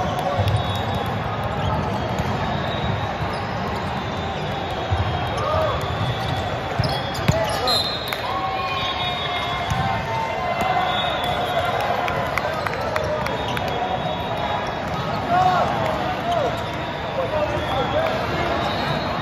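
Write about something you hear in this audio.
Athletic shoes squeak on a court floor.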